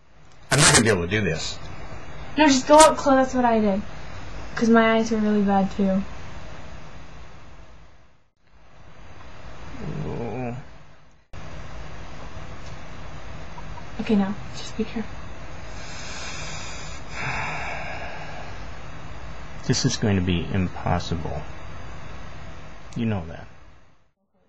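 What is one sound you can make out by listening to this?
A young woman talks and laughs close by, heard through a webcam microphone.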